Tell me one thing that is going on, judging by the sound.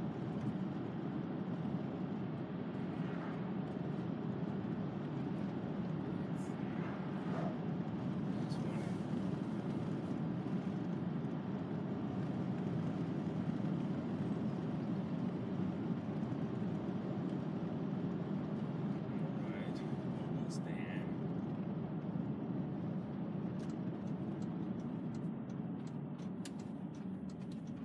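A car engine hums steadily from inside the car.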